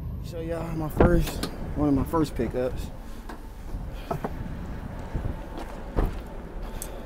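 A car door opens and thuds shut.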